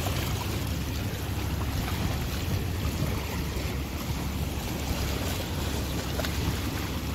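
Waves lap against rocks.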